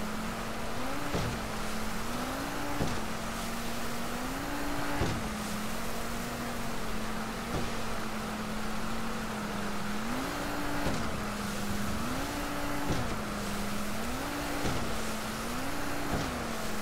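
A motorboat engine drones, its pitch rising and falling in repeated surges.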